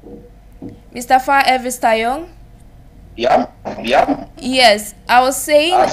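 A young woman speaks clearly into a close microphone.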